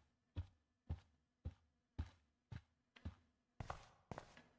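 Footsteps tap steadily on a floor.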